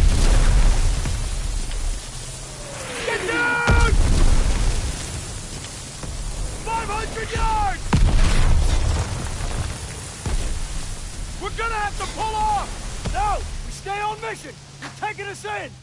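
Water sprays and splashes.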